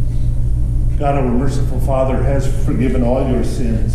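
A man reads aloud calmly in an echoing room.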